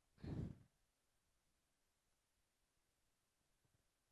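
A cloth rubs softly across a circuit board.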